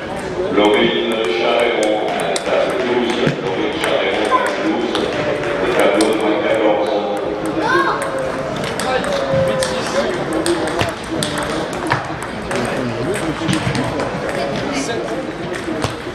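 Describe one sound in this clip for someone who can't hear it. A crowd of children and adults chatters in the background.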